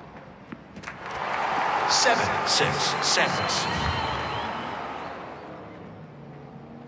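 A crowd applauds and cheers loudly, then fades.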